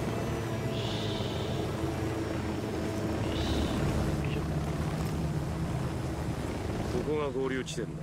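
A helicopter engine whirs with beating rotor blades.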